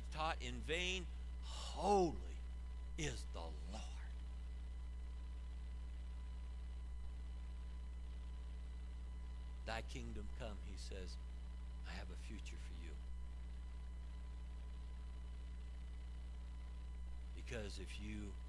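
A middle-aged man speaks calmly through a microphone in a large hall, with long pauses.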